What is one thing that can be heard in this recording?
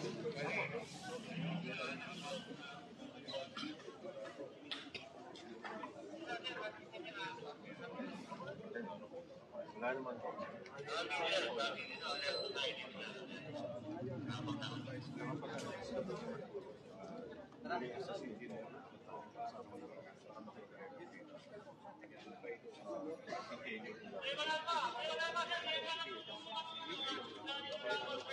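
A crowd of men and women talk over one another outdoors.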